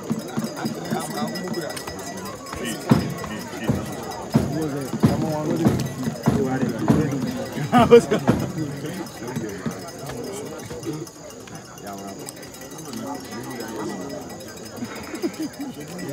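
Several men talk at once nearby, outdoors among a crowd.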